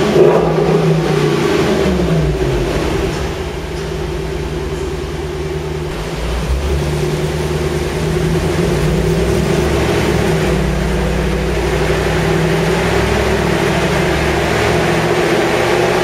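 A powerful car engine roars loudly at high revs, dipping and rising in pitch.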